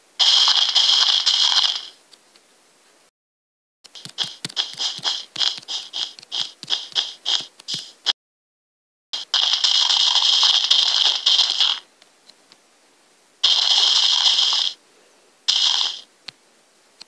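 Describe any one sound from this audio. Gravel crunches in quick bursts as blocks are dug away.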